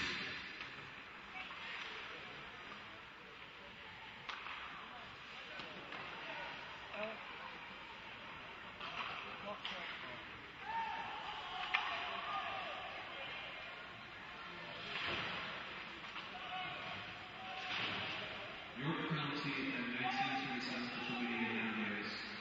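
Skates scrape and hiss on ice.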